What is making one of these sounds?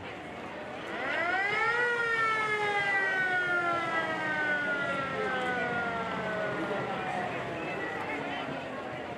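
An old fire truck's siren wails loudly, rising and then slowly falling.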